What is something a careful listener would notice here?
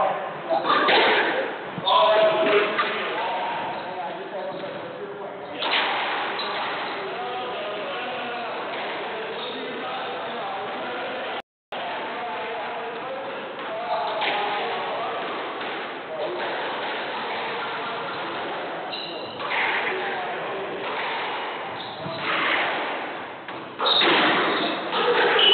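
A squash ball smacks against the walls and rackets in a fast rally.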